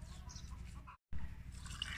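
A thick drink pours from a jug into a glass.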